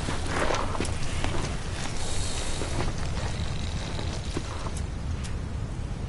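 Boots crunch on dry ground as footsteps.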